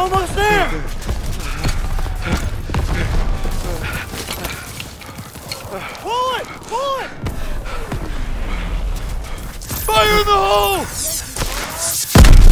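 Explosions boom and rumble all around.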